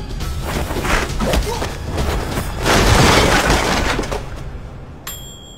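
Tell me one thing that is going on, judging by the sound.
Goods clatter to the floor.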